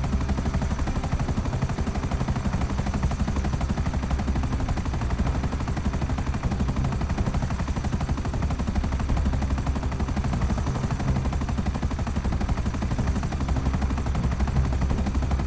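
A helicopter's rotor thumps rapidly and steadily overhead.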